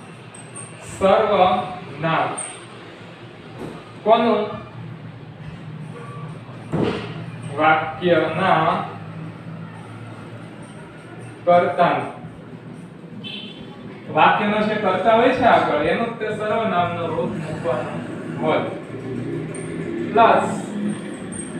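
A young man speaks calmly in a slightly echoing room.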